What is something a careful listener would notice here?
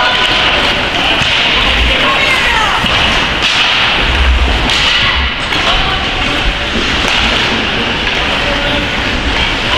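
Ice hockey skates scrape and carve across ice in a large echoing arena.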